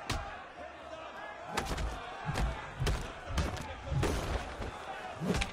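A crowd of men shouts and jeers.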